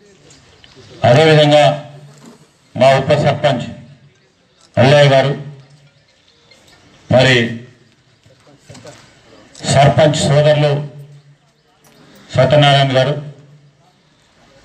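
A young man speaks loudly in bursts through a microphone and loudspeakers, outdoors.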